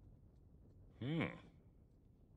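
An older man gives a short, puzzled grunt up close.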